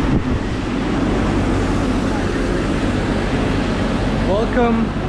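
A street sweeper's engine hums steadily nearby.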